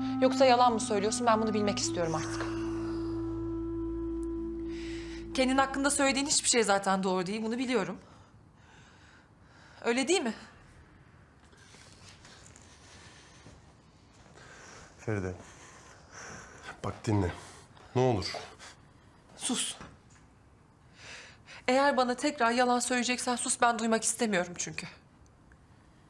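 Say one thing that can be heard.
A woman speaks in an upset, pleading voice close by.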